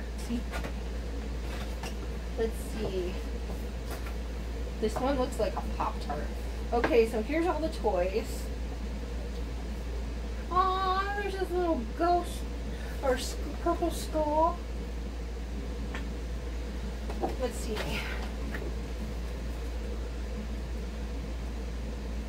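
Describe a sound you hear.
Cardboard packaging rustles in a woman's hands.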